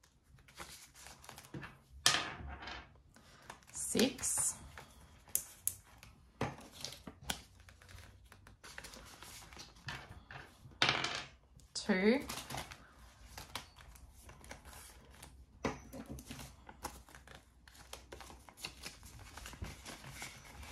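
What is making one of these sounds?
Paper banknotes rustle and crackle in hands.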